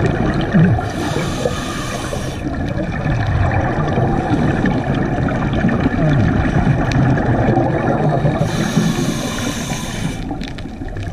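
Exhaled air bubbles out of a diver's regulator in loud gurgling bursts.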